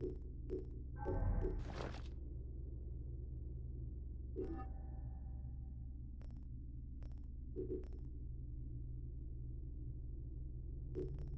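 Short electronic menu clicks and chimes sound now and then.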